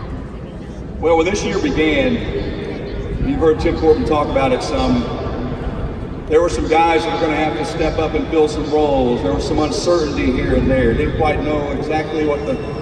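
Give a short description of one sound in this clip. A man speaks calmly through a loudspeaker in a large echoing hall.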